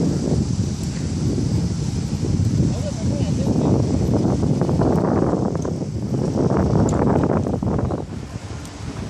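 Strong wind gusts and buffets loudly outdoors.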